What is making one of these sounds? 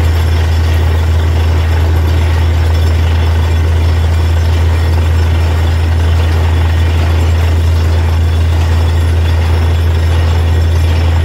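A drilling rig's engine roars loudly and steadily close by.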